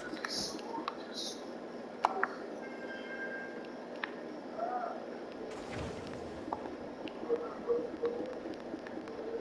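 Short interface clicks and blips sound at intervals.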